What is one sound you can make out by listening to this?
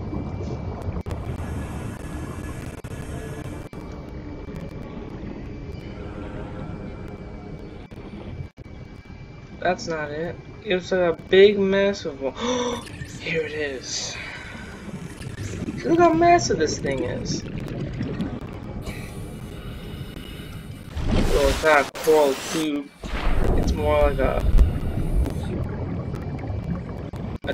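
Underwater ambience rumbles low and steadily.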